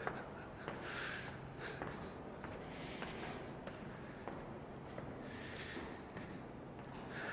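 Footsteps climb hard stairs, echoing in an indoor stairwell.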